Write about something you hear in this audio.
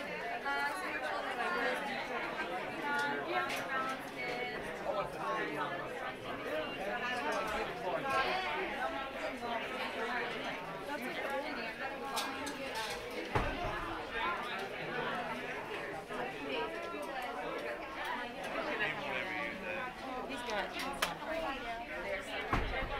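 A crowd of adults chatters all around, close by and further off.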